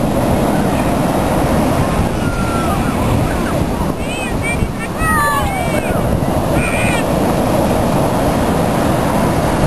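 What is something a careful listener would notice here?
Waves crash and wash onto the shore.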